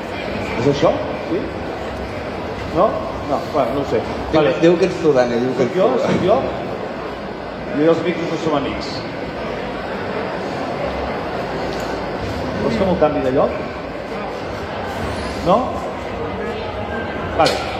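A man speaks with animation through a loudspeaker in a large hall.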